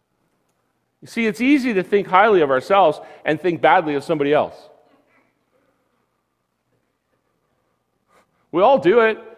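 A middle-aged man speaks with animation through a microphone in a large room.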